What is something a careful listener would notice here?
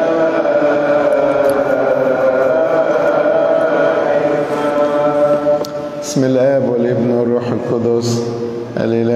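An elderly man chants in a sustained, melodic voice through a microphone, with a slight echo.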